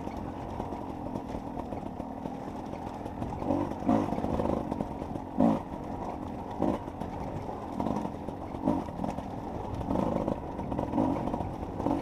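A dirt bike's suspension thumps over bumps on a rough trail.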